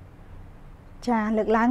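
A young woman speaks clearly and with animation into a microphone.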